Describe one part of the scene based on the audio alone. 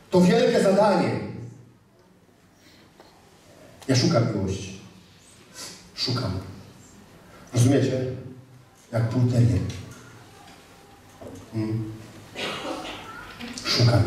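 A middle-aged man speaks with animation through a microphone, in bursts with pauses, in an echoing room.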